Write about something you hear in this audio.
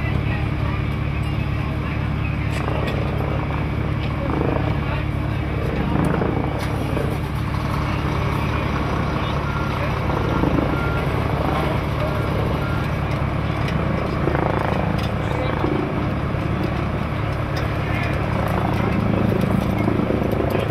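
Men talk and call out to each other nearby.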